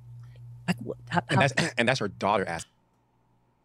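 A woman speaks with animation into a close microphone.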